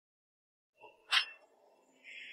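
Two porcelain cups clink together once.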